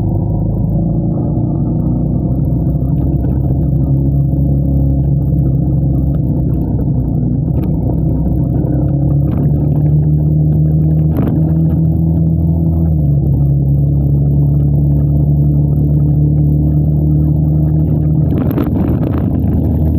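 Wind rumbles against the microphone while riding.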